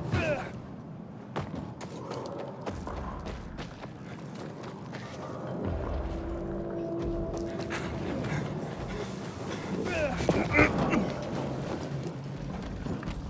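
Footsteps crunch over dry ground and grass.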